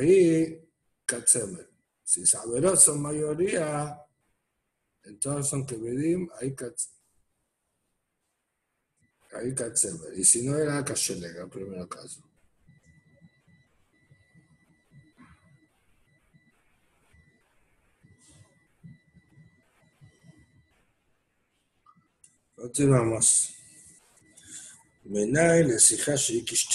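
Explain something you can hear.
A middle-aged man speaks calmly through an online call, in bursts with pauses.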